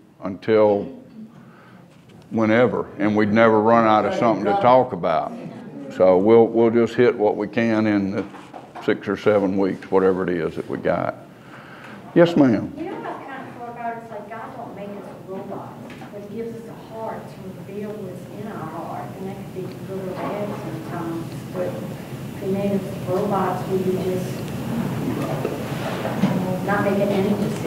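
An older man speaks calmly, sometimes with emphasis.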